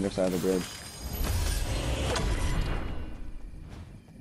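A treasure chest creaks open with a bright, shimmering chime.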